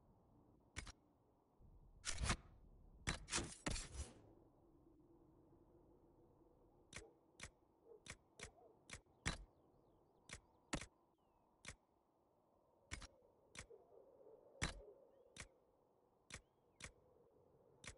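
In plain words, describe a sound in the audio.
Short menu clicks tick one after another as a game menu is browsed.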